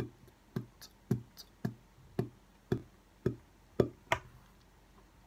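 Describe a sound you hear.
A young man claps his hands in a steady beat.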